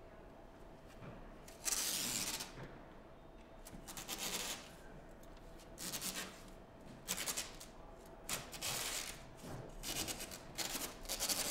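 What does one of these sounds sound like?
A cord scrapes and drags across the floor.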